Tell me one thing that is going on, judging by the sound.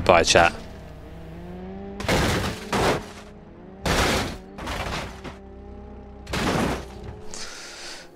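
A car crashes and tumbles with heavy thuds.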